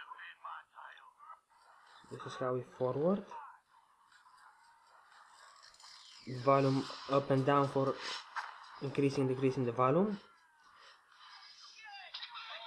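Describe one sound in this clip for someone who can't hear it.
Sound plays from a small phone speaker.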